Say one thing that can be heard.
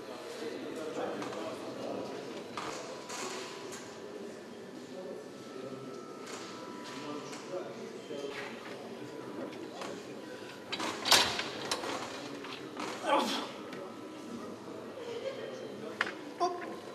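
A crowd of men murmurs and talks in an echoing hall.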